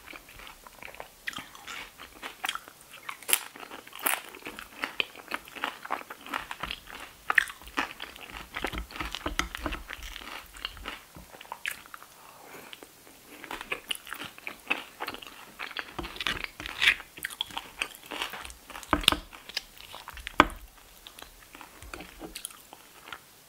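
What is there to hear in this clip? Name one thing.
Fingers rustle and scrape through a pile of wet food.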